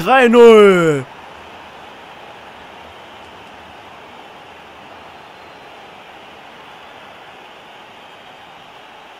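A large crowd cheers steadily in a stadium.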